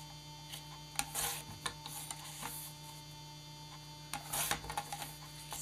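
A paper trimmer blade slides with a swish.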